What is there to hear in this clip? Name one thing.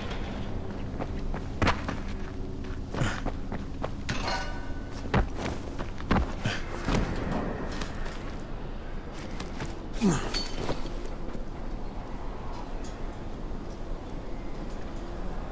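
Footsteps thud and scuff on rooftops.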